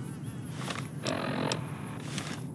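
A rifle is raised with a quick metallic clatter.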